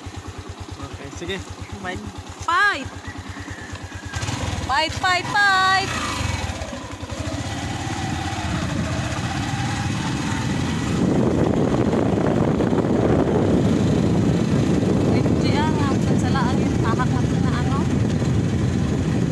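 A vehicle engine rumbles steadily, growing louder.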